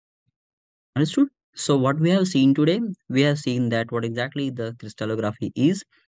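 A young man speaks calmly into a close microphone, explaining.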